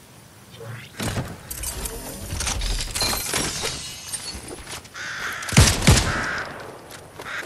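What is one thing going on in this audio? A treasure chest creaks open with a bright shimmering chime.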